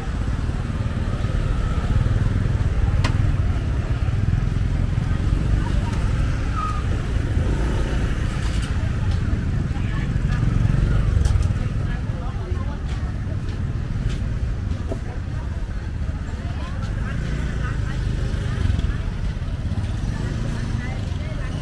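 Motorbike engines hum and putter past on a busy street.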